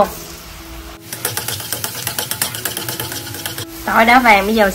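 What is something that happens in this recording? Garlic sizzles in hot oil.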